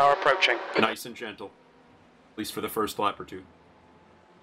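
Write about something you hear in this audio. A man speaks through a microphone in short bursts.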